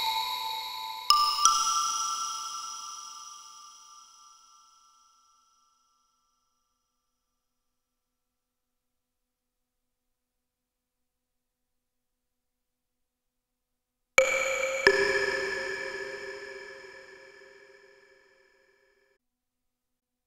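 Electronic bell-like tones chime and slowly ring away.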